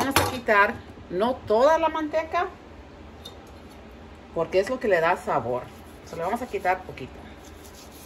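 A woman talks calmly and close by.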